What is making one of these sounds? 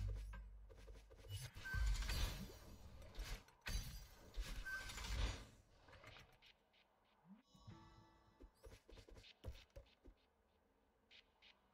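Video game sound effects whoosh and click in quick bursts.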